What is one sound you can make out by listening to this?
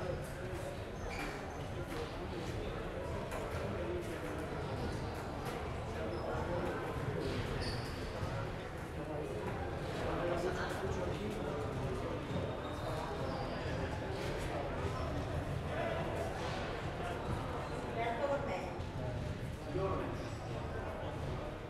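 A table tennis ball clicks against paddles and a table in a large echoing hall.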